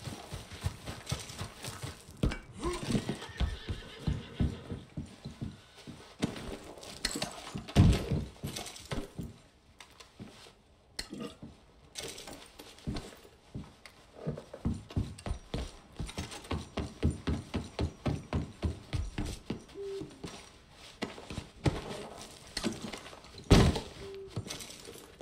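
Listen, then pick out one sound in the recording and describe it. Footsteps thump steadily on wooden boards.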